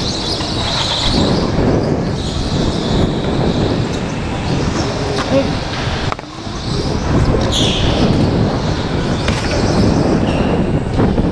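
A go-kart engine buzzes and whines close by as the kart speeds around corners.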